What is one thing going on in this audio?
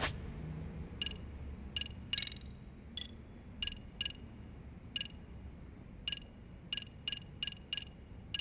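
Short menu clicks tick again and again.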